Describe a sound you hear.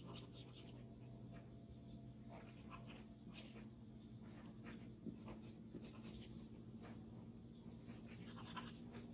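A pencil scratches and scrapes softly across paper.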